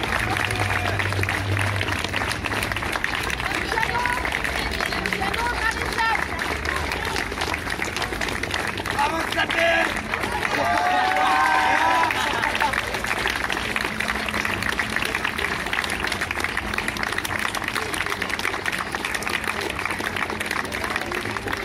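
A choir of children and adults sings together outdoors.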